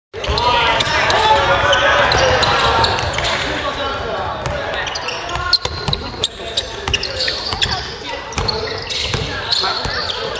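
Young players shout and call out across an echoing hall.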